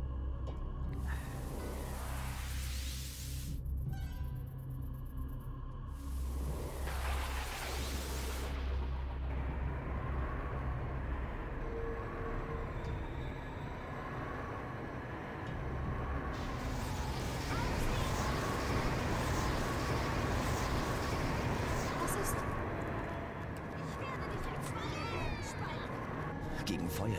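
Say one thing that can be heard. Magic spells whoosh and crackle with fire.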